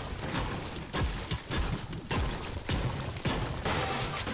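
A pickaxe strikes a wall with sharp, repeated thuds.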